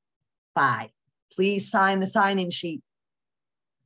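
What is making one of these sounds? A middle-aged woman speaks briefly and calmly over an online call.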